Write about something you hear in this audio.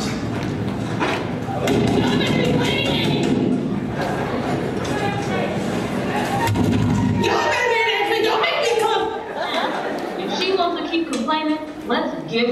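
Step dancers stomp their feet on a stage.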